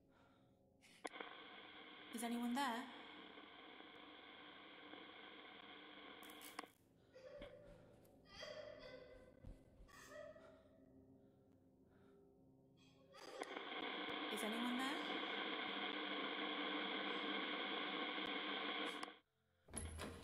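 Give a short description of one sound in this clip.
A radio hisses with crackling static.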